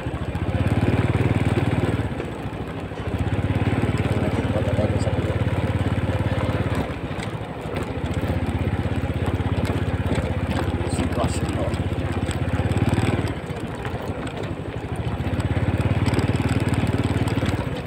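A vehicle's engine rumbles steadily while driving.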